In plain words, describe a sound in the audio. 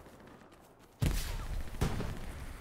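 An explosion booms sharply.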